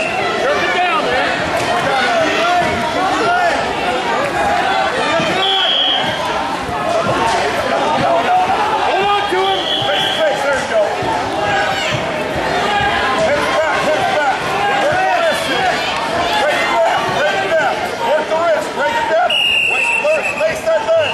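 A large crowd of spectators shouts and cheers loudly in a big echoing hall.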